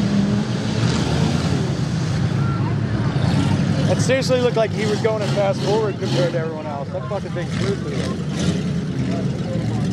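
An engine roars as a vehicle churns through mud.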